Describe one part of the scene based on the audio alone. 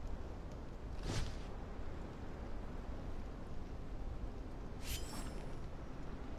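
A blade swooshes through the air.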